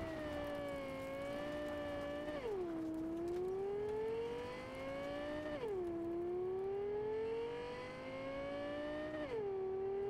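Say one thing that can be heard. A car engine revs up through the gears as it speeds along, dropping in pitch at each gear change.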